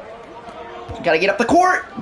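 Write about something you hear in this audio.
A young man talks excitedly, close to a microphone.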